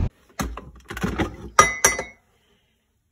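A glass coffee pot clunks as it is pulled from its machine.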